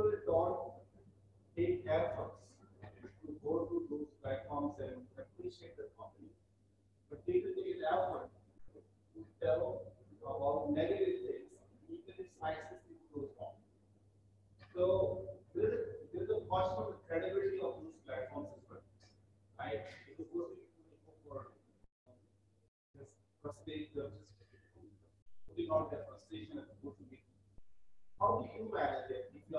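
A man speaks steadily into a microphone in a large room, heard through an online call.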